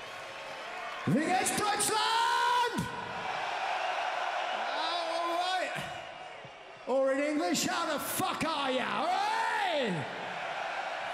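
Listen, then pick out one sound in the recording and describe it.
A man sings loudly through a microphone over a loudspeaker system.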